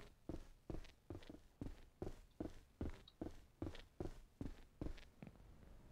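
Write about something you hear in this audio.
Heavy footsteps thud steadily on hollow wooden boards.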